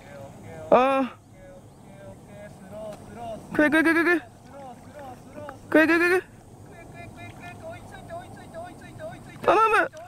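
A small animal swims through calm water, rippling it softly.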